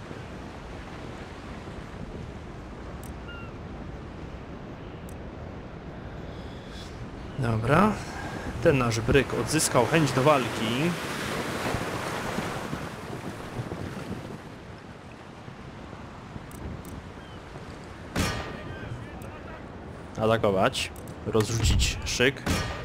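Sea waves wash and churn steadily.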